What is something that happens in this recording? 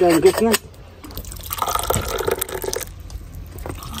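Tea splashes as it is poured into glasses.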